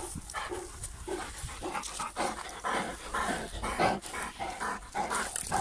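Dogs pant close by.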